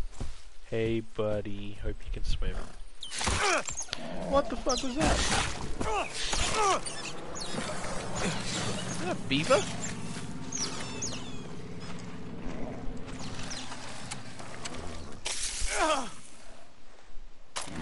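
A man talks casually into a microphone, heard close up.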